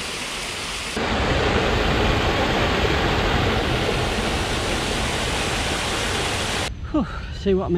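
Water rushes and gurgles over rocks into a pool.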